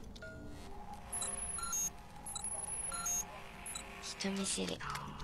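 An electronic scanner hums with steady beeping tones.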